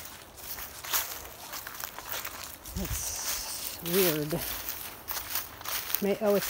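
Footsteps crunch and rustle through dry grass and leaves.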